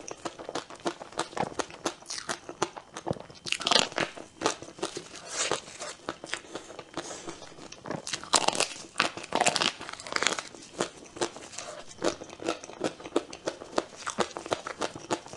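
A young woman bites into a soft cake with a squishy crunch.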